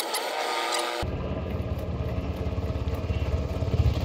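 A helicopter's rotor thumps loudly nearby.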